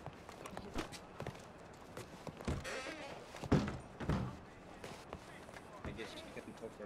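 Footsteps thud on a wooden floor indoors.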